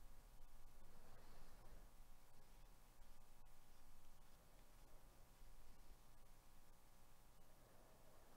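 Trading cards slide against each other as they are shuffled.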